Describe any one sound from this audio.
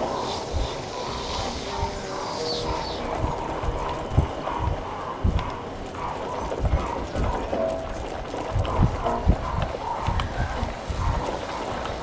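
Heavy footsteps splash and thud through shallow water.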